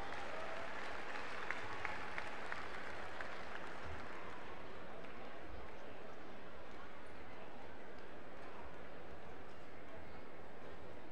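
A large crowd murmurs steadily in a big echoing arena.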